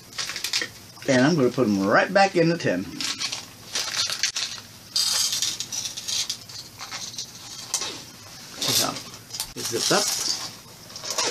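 Plastic crinkles and rustles in a man's hands.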